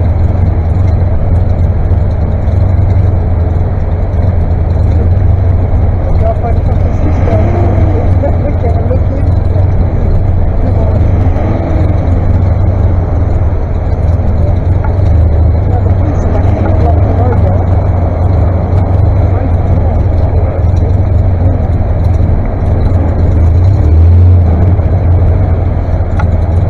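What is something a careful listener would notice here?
Tractor engines rumble and idle steadily nearby, outdoors.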